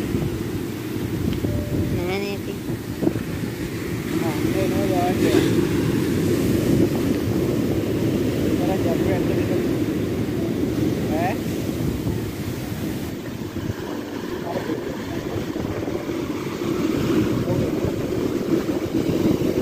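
Waves crash and roar steadily onto a beach.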